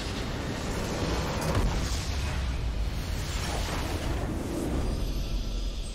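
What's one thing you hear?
A structure shatters with a heavy crash.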